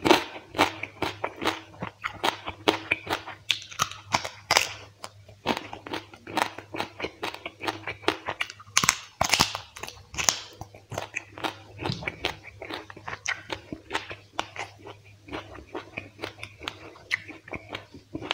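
A man chews food loudly and smacks his lips close to a microphone.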